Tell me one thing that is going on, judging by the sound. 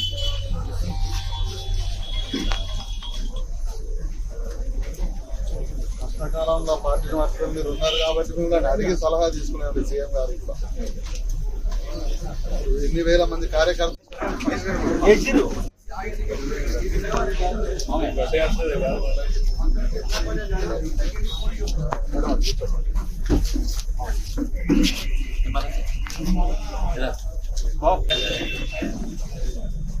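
An elderly man speaks with animation close by.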